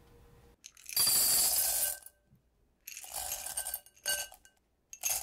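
Chocolate chips pour and rattle into a glass bowl.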